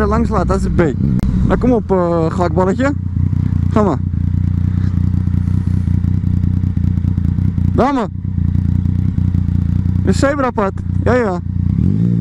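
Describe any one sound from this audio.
A motorcycle engine revs sharply in short bursts.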